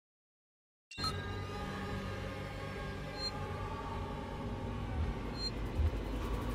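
An emergency panel gives short electronic beeps.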